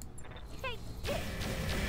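A laser beam fires with a short falling zap.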